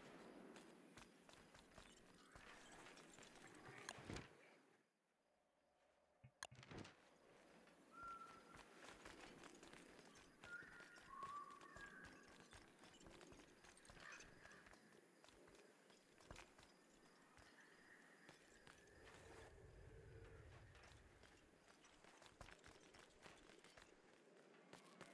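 Footsteps tap lightly on a hard path.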